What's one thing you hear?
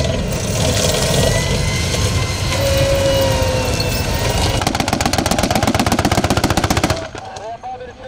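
A heavy engine rumbles loudly.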